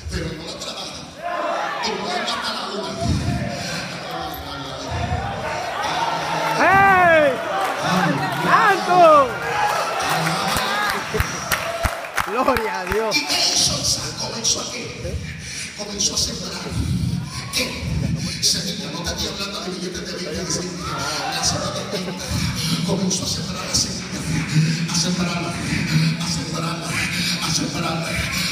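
A man preaches with animation through loudspeakers in a large echoing hall.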